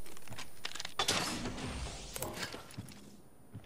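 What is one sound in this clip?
A metal supply bin slides open with a hiss.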